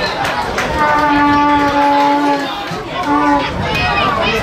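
A referee's whistle blows a long blast, then a short one.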